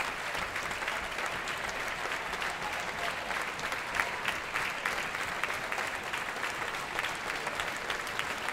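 A large crowd applauds steadily in an echoing hall.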